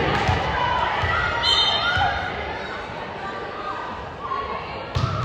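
Players and spectators cheer and shout in a large echoing gym.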